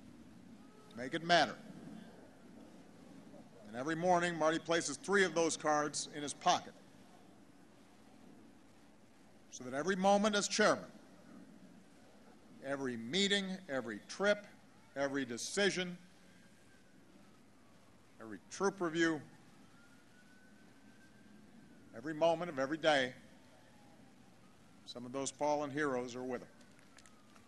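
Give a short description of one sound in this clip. A man speaks slowly and deliberately through a microphone outdoors, with long pauses.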